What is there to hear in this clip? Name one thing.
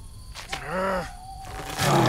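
A young man cries out in alarm.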